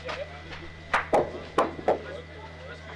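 Metal balls clack together.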